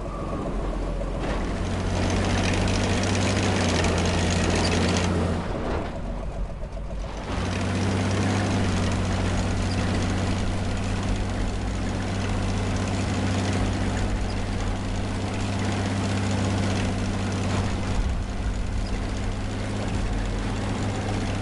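Tank tracks clank and crunch over the ground.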